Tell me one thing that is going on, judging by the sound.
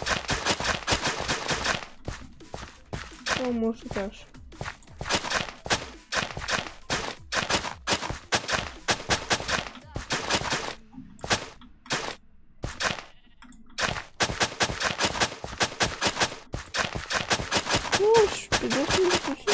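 A pickaxe rapidly chips at dirt with quick crunching knocks.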